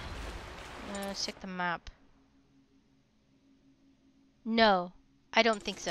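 A bright chime sounds.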